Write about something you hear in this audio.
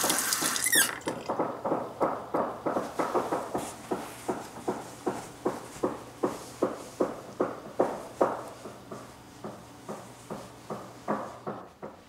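A young woman sobs into a towel in rapid, shaky breaths.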